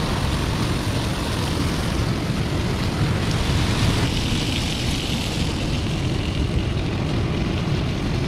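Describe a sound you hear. Waves crash and surge against rocks nearby.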